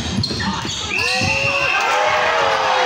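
A referee's whistle blows.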